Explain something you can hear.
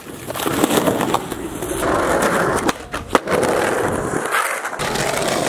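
Skateboard wheels roll loudly over rough asphalt.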